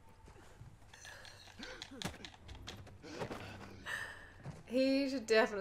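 A young woman talks into a headset microphone.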